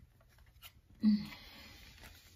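A card is laid down with a soft tap.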